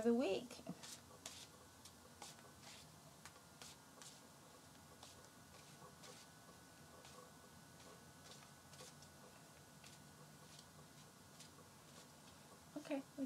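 Cards shuffle with soft, quick ticks.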